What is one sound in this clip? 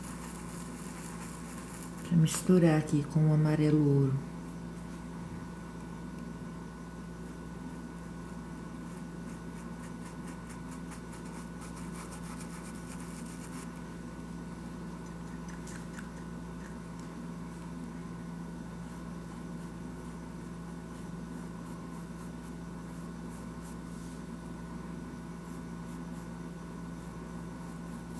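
A paintbrush brushes softly across canvas.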